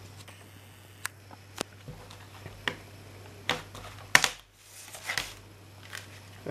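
A plastic disc case clicks and rattles as it is handled.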